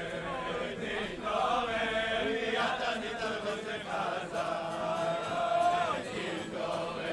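An elderly man sings in a slow, drawn-out voice.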